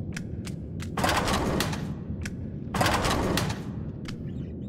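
A metal filing drawer scrapes open and shut.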